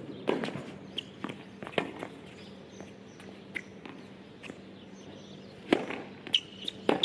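Tennis shoes squeak on the court.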